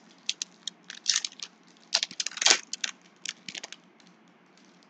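A foil wrapper crinkles and tears close by.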